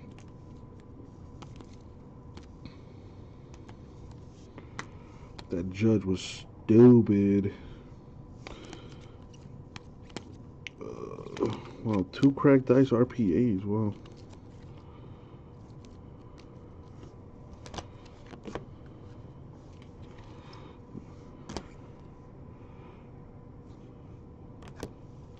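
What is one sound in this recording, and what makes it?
Plastic card holders click and tap against each other.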